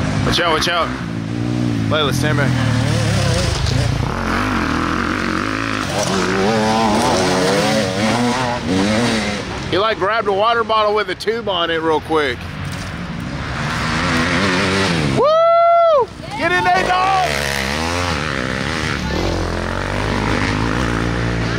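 Dirt bike engines rev and whine up and down.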